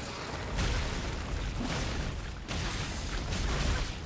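A giant creature roars.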